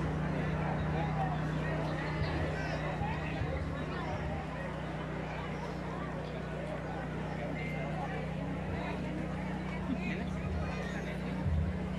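A large crowd of men and women chatters and murmurs outdoors.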